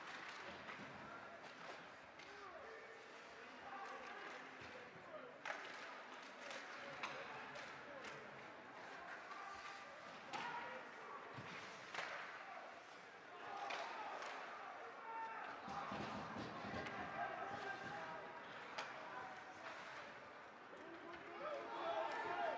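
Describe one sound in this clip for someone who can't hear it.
A crowd of spectators murmurs and shouts in an echoing rink.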